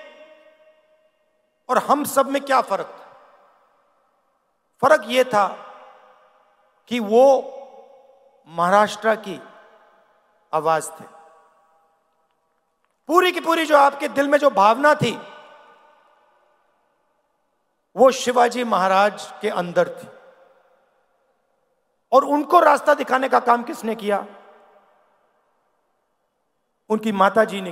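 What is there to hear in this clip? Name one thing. A man speaks forcefully into a microphone over loudspeakers, in short bursts with pauses, echoing across a large outdoor space.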